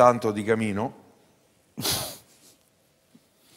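An older man speaks calmly, close to a microphone.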